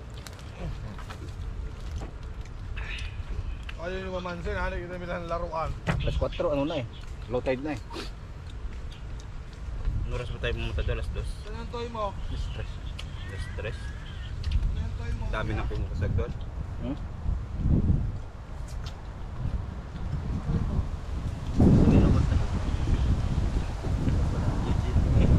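Leaves rustle as a young man handles food on them.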